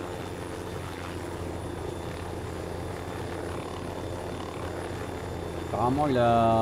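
A helicopter's rotor thrums steadily.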